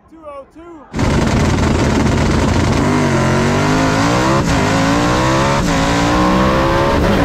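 A racing engine roars loudly up close inside the car, rising and falling in pitch.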